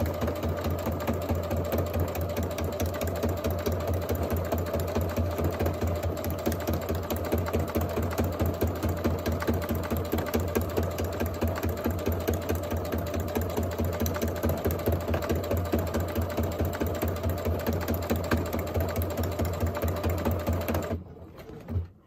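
A sewing machine runs with a fast, steady rattling hum, then stops.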